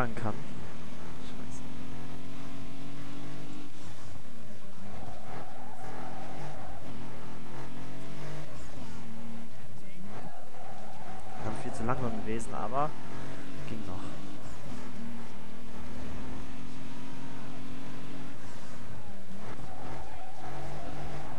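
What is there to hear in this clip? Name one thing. A racing car engine roars, revving up and dropping as the gears shift.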